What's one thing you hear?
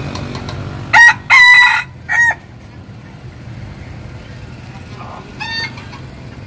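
A rooster clucks and squawks loudly nearby.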